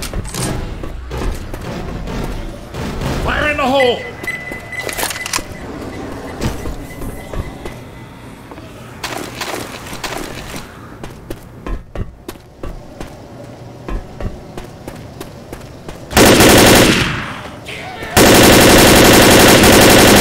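An automatic rifle fires rapid, loud bursts.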